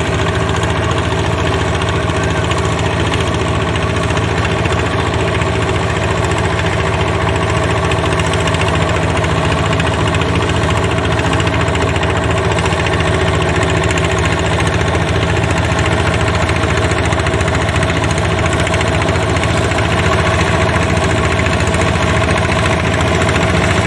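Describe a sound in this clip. Muddy water splashes and churns under turning wheels.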